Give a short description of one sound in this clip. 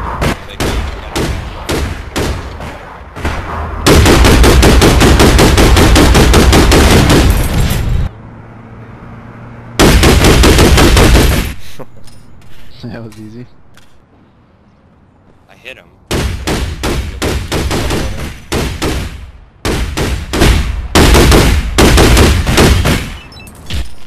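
Rifle fire rattles in rapid bursts.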